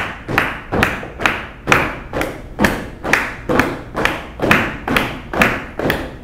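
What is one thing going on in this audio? A woman claps her hands to the beat.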